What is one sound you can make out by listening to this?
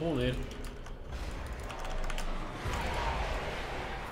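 Magic spells whoosh and crackle in a video game.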